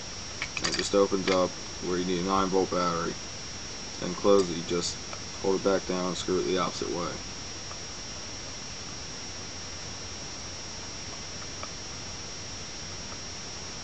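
Plastic clicks and rattles as a handheld game console is handled.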